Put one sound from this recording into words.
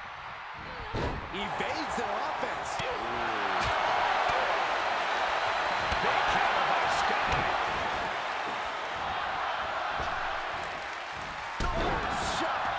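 Bodies thud heavily onto a mat.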